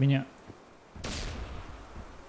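A grenade explodes with a heavy boom.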